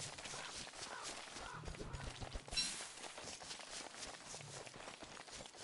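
Footsteps patter on dry ground.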